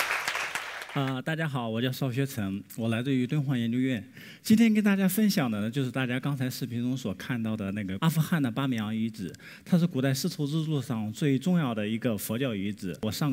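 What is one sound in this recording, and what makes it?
A man speaks calmly to an audience through a microphone in a large hall.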